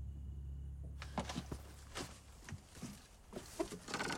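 A young woman breathes hard and strains nearby.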